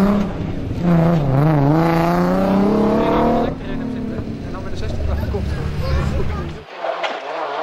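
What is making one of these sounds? A race car engine roars past at high revs.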